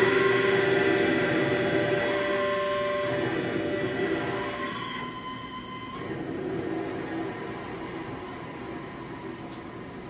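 Music plays through loudspeakers and slowly fades.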